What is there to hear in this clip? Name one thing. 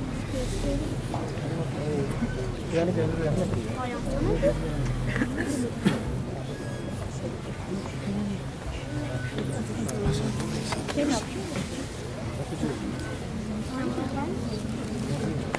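A crowd of men and women murmur and talk quietly nearby.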